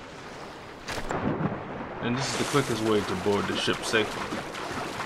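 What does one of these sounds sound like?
Water splashes as a body plunges in.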